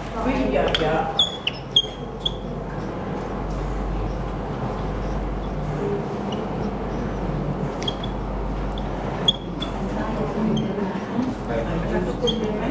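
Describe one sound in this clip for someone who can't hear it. A marker squeaks across a whiteboard.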